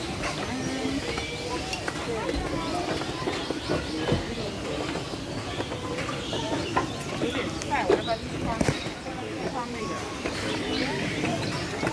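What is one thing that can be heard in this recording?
Several people talk and call out nearby, outdoors.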